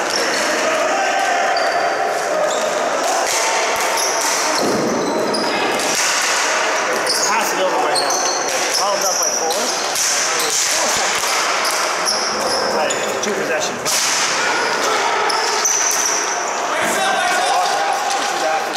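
Sneakers squeak sharply on a hard floor, in a large echoing hall.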